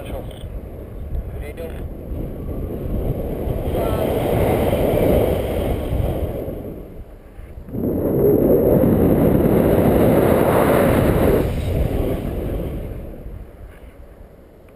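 Wind rushes loudly past close by, rising and falling in gusts.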